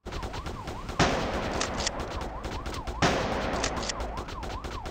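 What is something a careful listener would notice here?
A gun fires sharp shots.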